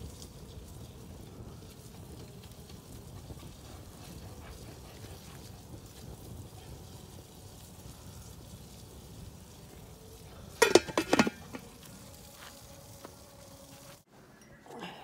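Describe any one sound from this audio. Water bubbles and simmers at a steady boil.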